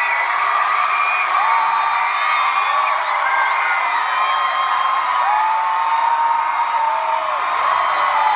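A large crowd screams and cheers loudly throughout.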